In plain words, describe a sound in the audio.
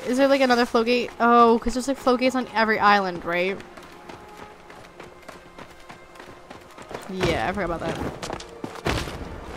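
Light footsteps patter quickly on hard ground.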